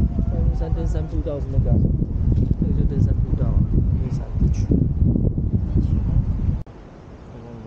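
Wind gusts loudly across a microphone outdoors.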